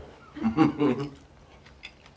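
A man makes a short sound of delight with his mouth full.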